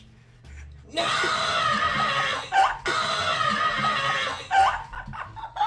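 A man yells excitedly over an online call.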